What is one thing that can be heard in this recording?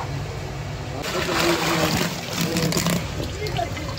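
Water splashes as a net is lifted.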